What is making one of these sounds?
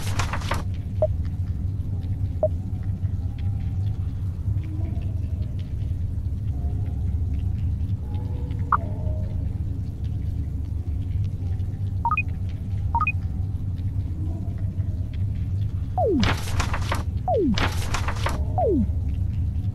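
Short soft blips sound as menu choices change.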